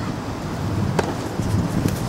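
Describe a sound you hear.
A tennis ball is struck with a sharp pop outdoors.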